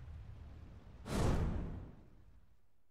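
A bright burst swells with a rushing whoosh.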